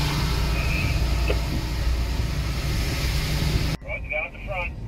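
A car engine rumbles low inside the car.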